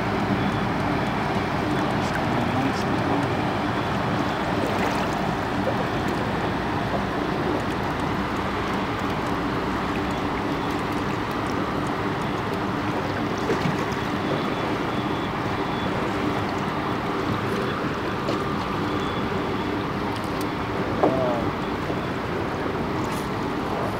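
Water laps against a small boat's hull.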